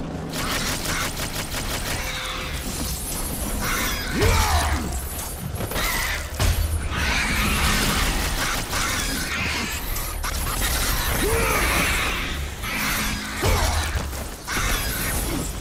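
Chained blades whoosh and slash through the air again and again.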